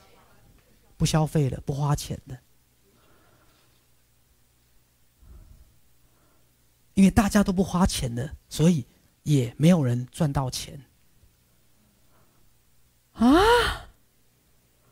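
A man speaks with animation into a clip-on microphone, in bursts with pauses.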